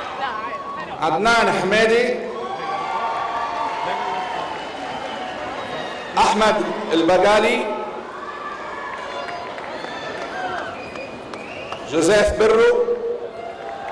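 A crowd cheers and whoops in short bursts.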